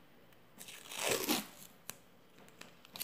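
Masking tape is pulled off a roll with a short tearing rasp.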